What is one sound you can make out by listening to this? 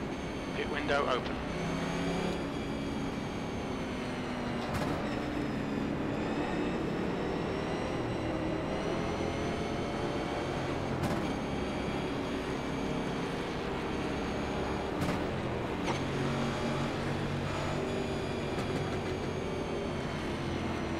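A race car engine roars steadily, rising and falling in pitch as it shifts and revs.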